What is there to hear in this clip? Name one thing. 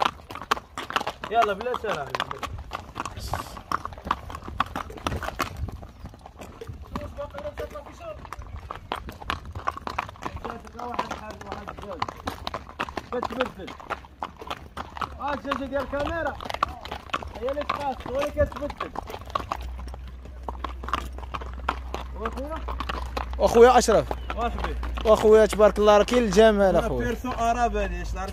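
Horse hooves clop on a paved road.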